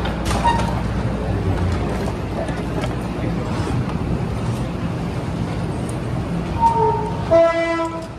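An escalator hums steadily as it climbs.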